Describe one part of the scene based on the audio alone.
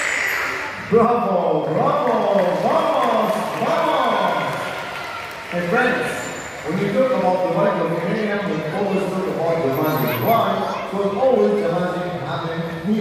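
A man speaks with animation over a loudspeaker in a large echoing hall.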